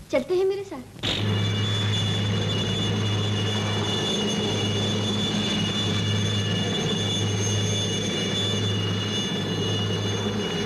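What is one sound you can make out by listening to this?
Aircraft engines hum steadily and loudly.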